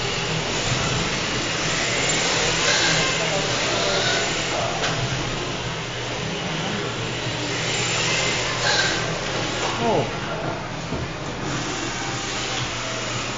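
Toy car tyres squeal on a smooth floor.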